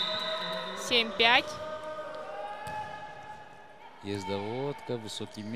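A volleyball is struck with a sharp slap in a large echoing hall.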